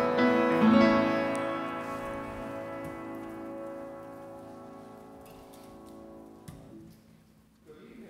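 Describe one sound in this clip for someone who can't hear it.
A piano chord rings out and slowly fades in an echoing hall.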